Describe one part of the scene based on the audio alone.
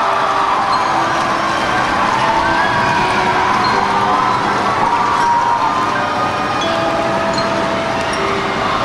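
A marching band plays brass music, echoing through a large stadium.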